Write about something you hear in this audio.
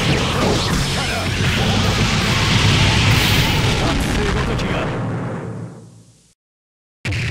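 A huge explosion roars and fades away.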